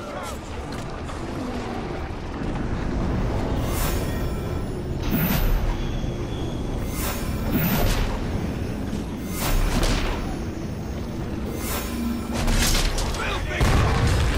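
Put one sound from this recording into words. Fires crackle and roar.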